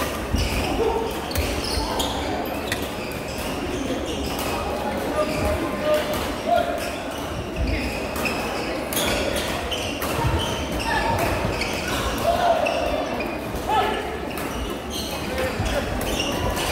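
Shuttlecocks are struck with sharp pops of rackets, over and over.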